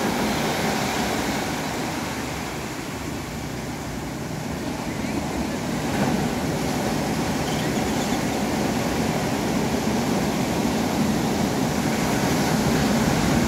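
Ocean waves roll and wash steadily outdoors.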